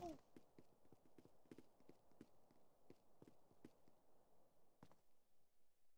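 Quick footsteps run across a hard floor.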